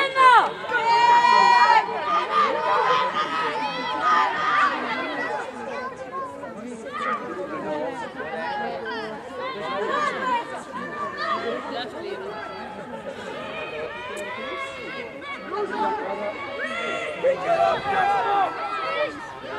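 Young women shout and call out to each other outdoors.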